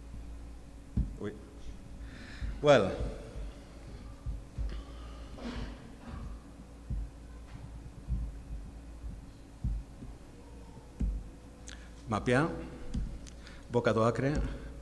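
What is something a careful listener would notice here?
A man speaks calmly into a microphone, heard through a loudspeaker in a room.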